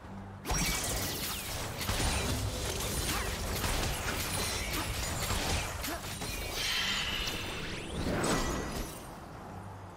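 Blows and hits thud and clang rapidly.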